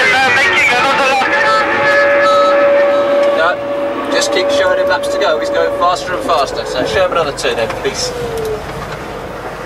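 A man speaks calmly over a radio headset.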